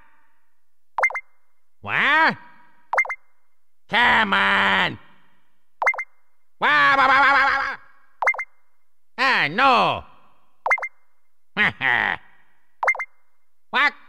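Short electronic blips sound now and then as a menu cursor moves.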